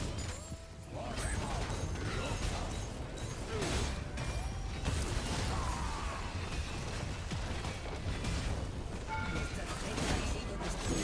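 Fantasy combat sound effects clash and whoosh with bursts of spells.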